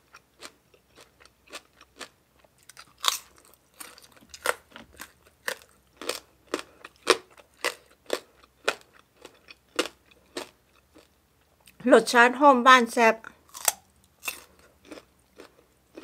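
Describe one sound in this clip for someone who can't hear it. A woman bites and chews crunchy food close to a microphone.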